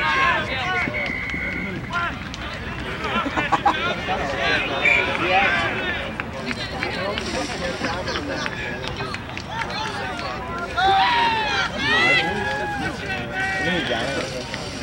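A crowd of spectators nearby chatters and shouts outdoors.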